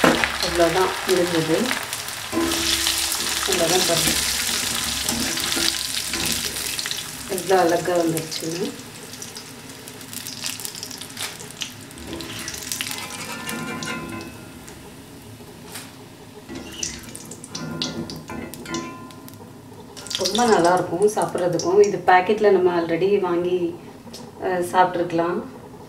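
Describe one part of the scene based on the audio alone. Oil sizzles and hisses loudly as food fries in a pan.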